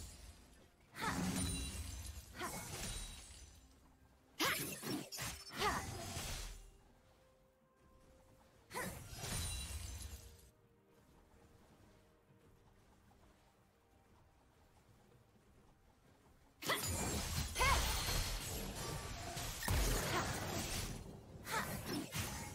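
Video game combat sound effects burst and clash in bursts.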